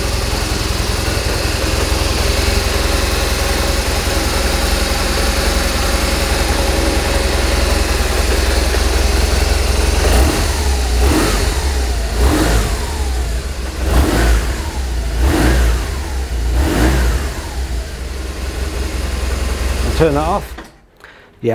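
A motorcycle engine idles with a steady low rumble, then cuts out.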